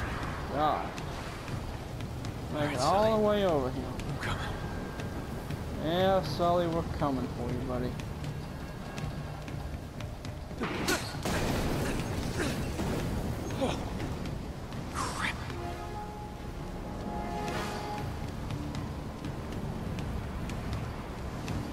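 Running footsteps thud on a wooden deck.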